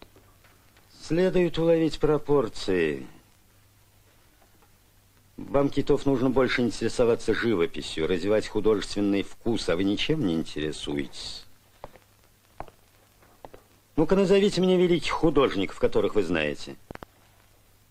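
An elderly man speaks sternly and slowly.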